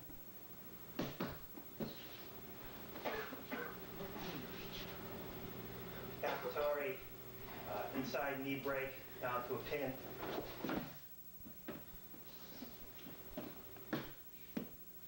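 A body thumps onto a padded mat.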